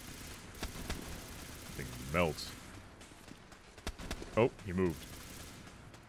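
Gunfire from a game crackles in short bursts.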